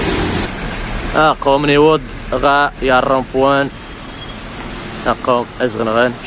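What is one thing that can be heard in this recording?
Car tyres hiss on a wet road nearby.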